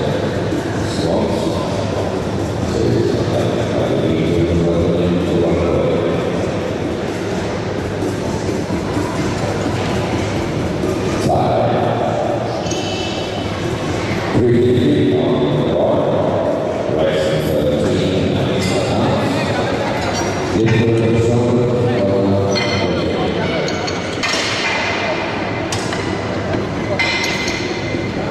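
Men talk nearby with animation.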